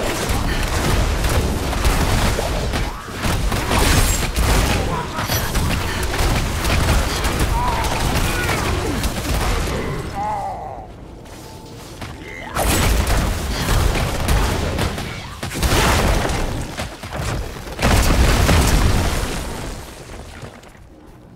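Weapons slash and strike hard in a fast fight.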